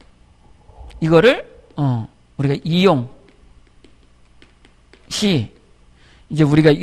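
A man speaks loudly through a microphone in short bursts.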